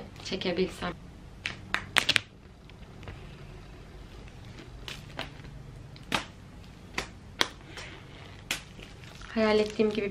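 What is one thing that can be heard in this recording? Plastic film peels off a box and crinkles.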